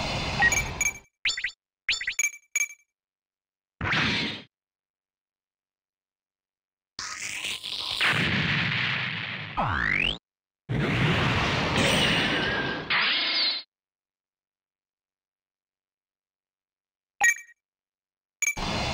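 Short electronic beeps chime several times.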